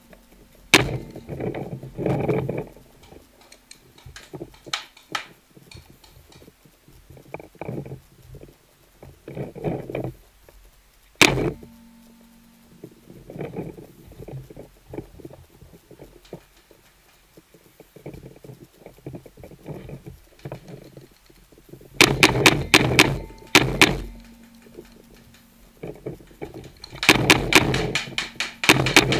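A paintball marker fires bursts of sharp, rapid shots close by.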